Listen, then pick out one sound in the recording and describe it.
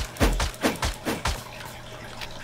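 Light footsteps rustle through leafy plants.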